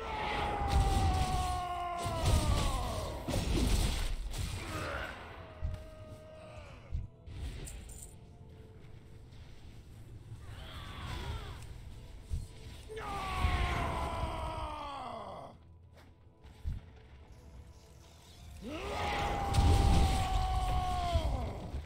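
Video game spell effects whoosh and ring with falling tones.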